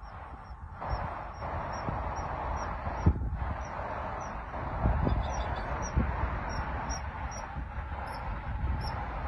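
Water laps softly as a swan paddles along.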